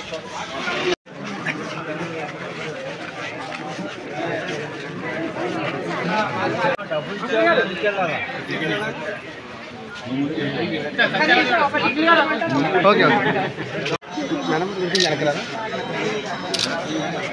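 A crowd of men and women talk over one another outdoors.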